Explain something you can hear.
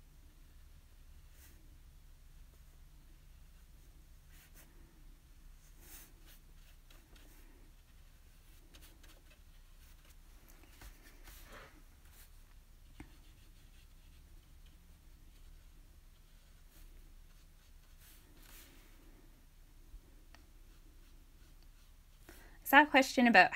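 A paintbrush swishes softly across paper.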